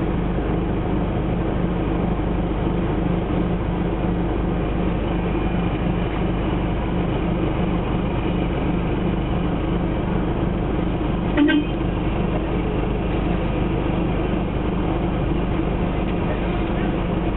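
A car engine idles with a steady throb.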